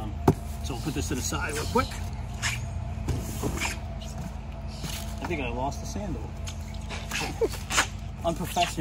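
Cardboard scrapes and thumps as a box is handled.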